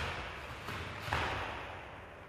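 A martial artist's uniform snaps sharply with quick strikes.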